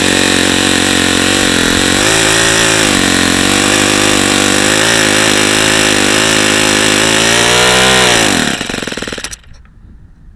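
A small engine roars loudly at high speed, then slows and dies away.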